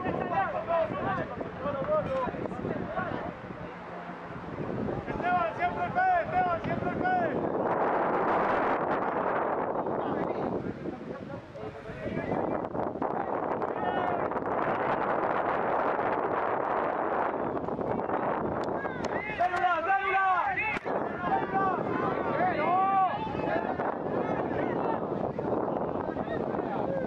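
Spectators cheer and shout outdoors.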